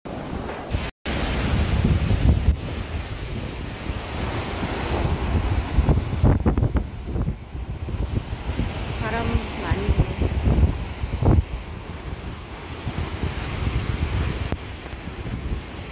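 Waves crash and surge over rocks close by, outdoors in gusty wind.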